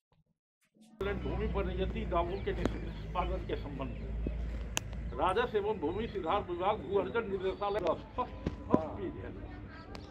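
A man speaks loudly and calmly to a crowd outdoors.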